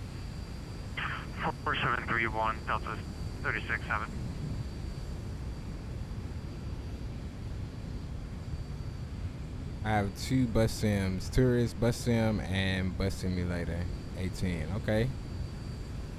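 A man talks into a close microphone, casually and in short bursts.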